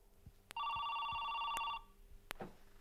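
A telephone rings once.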